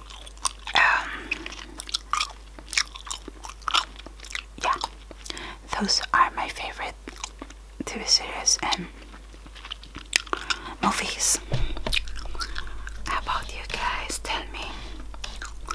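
A woman makes wet mouth clicks and lip smacks close to a microphone.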